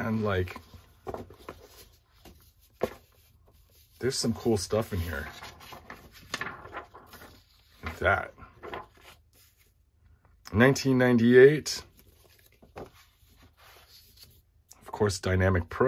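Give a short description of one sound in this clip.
Sheets of stiff paper rustle and flap as they are handled.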